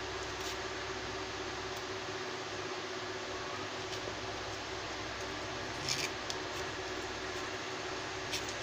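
A thin tool scrapes and clicks against a phone's casing as it is pried apart.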